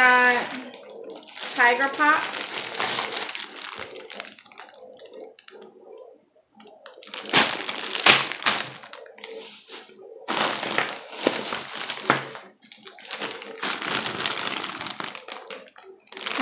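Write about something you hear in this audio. Plastic candy bags crinkle and rustle.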